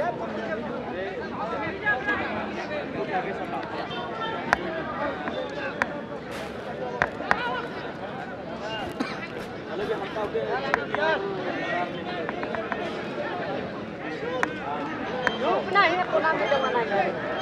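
A large outdoor crowd chatters and shouts.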